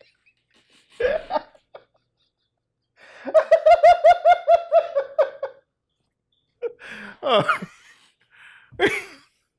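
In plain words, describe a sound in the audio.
A man laughs loudly and heartily close to a microphone.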